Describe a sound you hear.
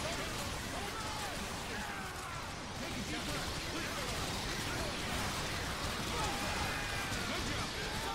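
Laser weapons fire in rapid, crackling bursts.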